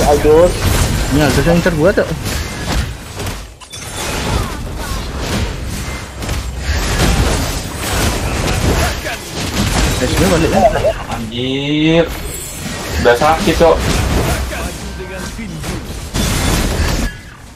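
Game sound effects of clashing and spells play loudly.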